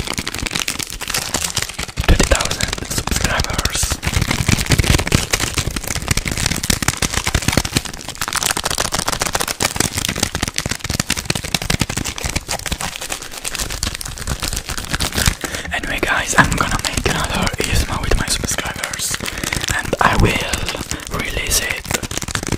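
Wrapper paper crinkles and crackles close to a microphone.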